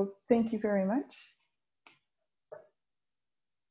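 A woman speaks briefly and warmly over an online call.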